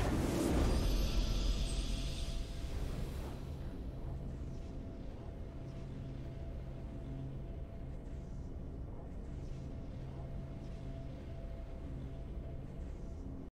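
A triumphant fanfare plays softly and steadily.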